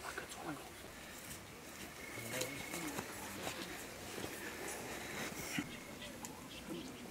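Men talk quietly nearby.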